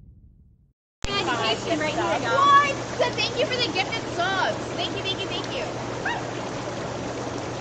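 Young women talk and laugh close by, outdoors.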